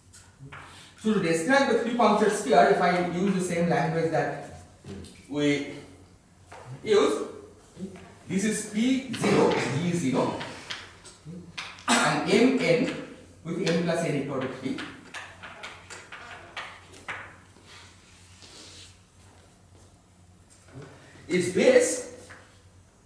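A man lectures calmly in an echoing hall.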